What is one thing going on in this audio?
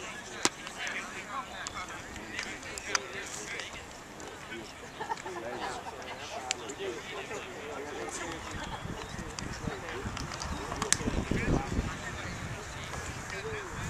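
Many young men call out and chatter across an open field.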